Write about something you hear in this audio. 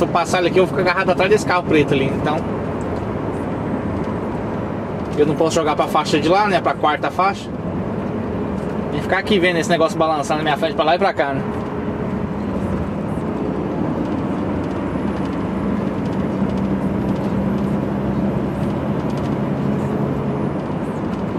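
Tyres roar steadily on a motorway.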